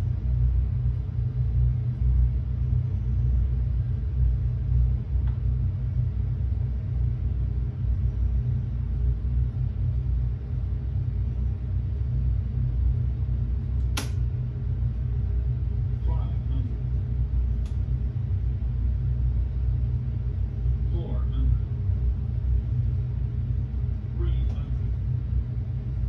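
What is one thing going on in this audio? Jet engines rumble low and steadily through loudspeakers.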